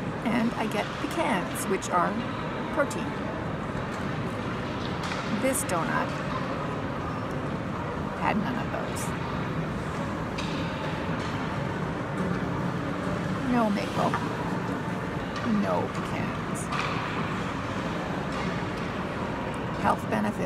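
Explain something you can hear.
An older woman talks close to the microphone.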